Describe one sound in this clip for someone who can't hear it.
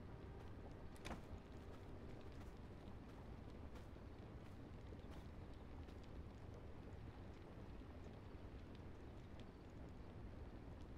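Torches crackle softly.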